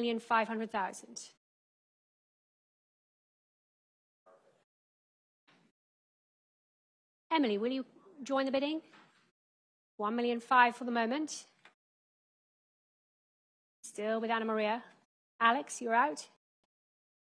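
A young woman speaks through a microphone, calling out with animation in short bursts.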